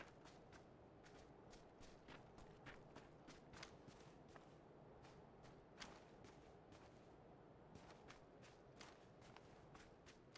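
Footsteps crunch through grass at a steady pace.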